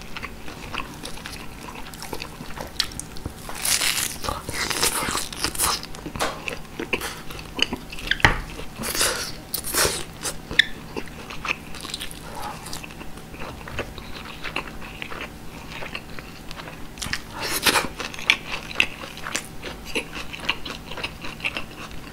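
A person chews meat loudly and wetly, close to a microphone.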